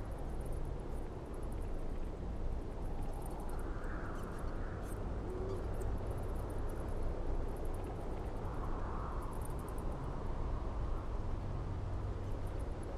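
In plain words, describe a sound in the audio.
A deep magical rumble hums steadily.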